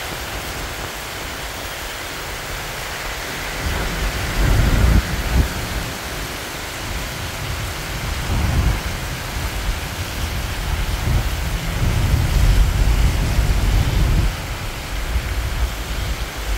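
Traffic hums steadily on a wet road.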